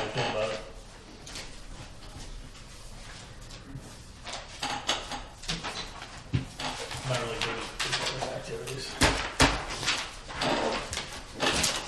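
Papers rustle as a man handles documents.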